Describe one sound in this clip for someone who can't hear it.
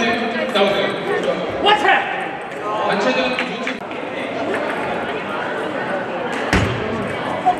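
Several people talk in a large echoing hall.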